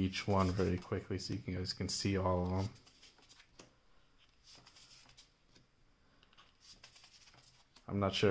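Glossy sheets slide and rustle as they are handled.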